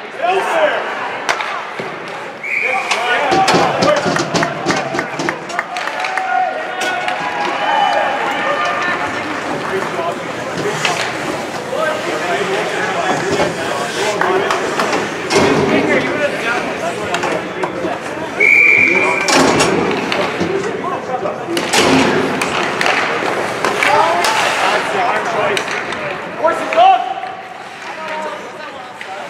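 Skates scrape and hiss across ice.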